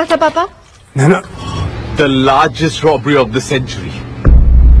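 A young man speaks excitedly over a phone.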